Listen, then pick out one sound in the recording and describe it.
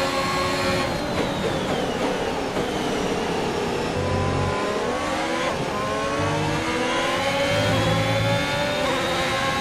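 A racing car engine drops in pitch as the car brakes and downshifts, then revs back up.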